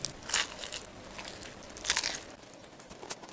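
A man chews crunchy food close to a microphone.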